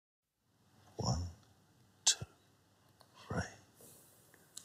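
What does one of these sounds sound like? A man speaks softly and calmly close by.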